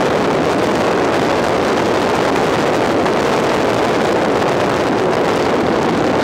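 Wind rushes loudly and steadily past, outdoors while riding.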